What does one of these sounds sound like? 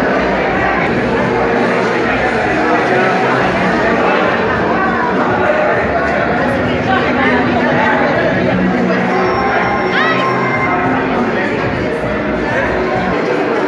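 A crowd of men and women chatters nearby in a busy, echoing room.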